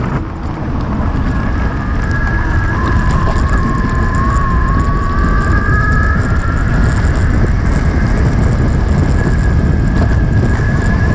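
An electric motor whines, its pitch rising and falling slightly.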